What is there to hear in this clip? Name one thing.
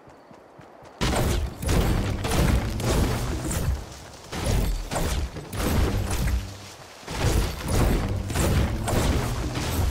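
A pickaxe strikes wood again and again with loud, heavy thuds.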